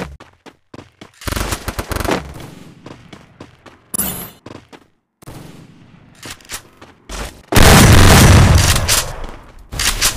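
Footsteps patter quickly over dirt ground.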